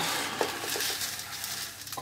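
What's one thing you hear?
Oats pour and rustle into a jug.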